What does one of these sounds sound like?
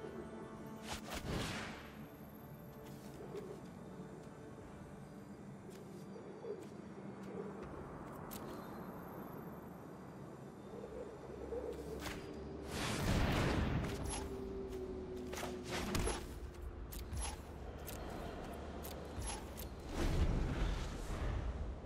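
Game sound effects whoosh and chime as cards are played.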